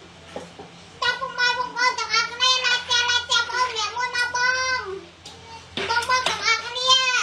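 A young child sings loudly in a high voice close by.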